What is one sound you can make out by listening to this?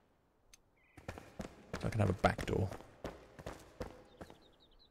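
Footsteps scuff on stone.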